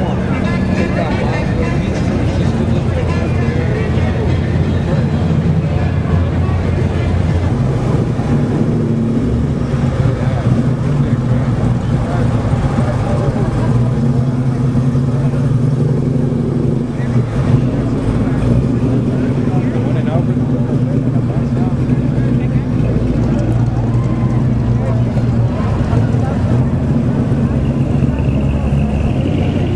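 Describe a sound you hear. Classic car engines rumble and idle as they roll slowly past, close by.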